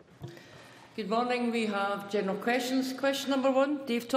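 A woman speaks clearly through a microphone and loudspeakers.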